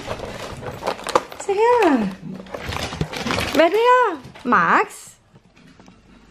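A paper packet rustles and crinkles.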